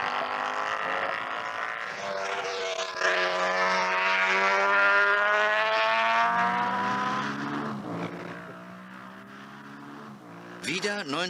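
A motorcycle engine roars past at high speed, its pitch falling as it goes away.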